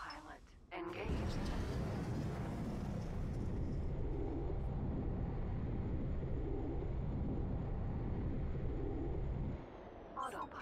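A spacecraft engine rumbles with a deep, loud roar.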